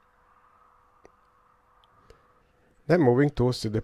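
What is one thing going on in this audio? A small metal part clicks softly against a measuring gauge.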